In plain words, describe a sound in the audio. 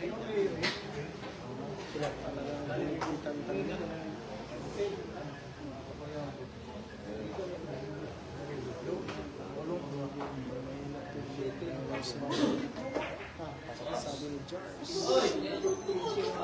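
A crowd of people chatters steadily.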